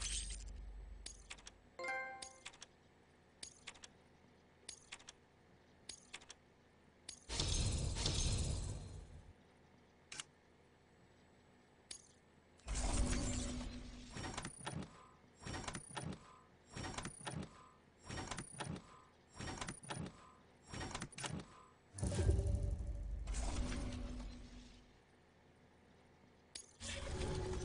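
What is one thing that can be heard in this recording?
Short electronic menu tones blip and whoosh again and again.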